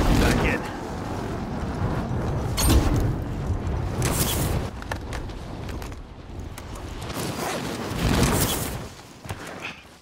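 Wind rushes loudly past during a freefall.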